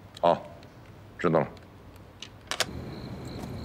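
A middle-aged man speaks firmly into a telephone close by.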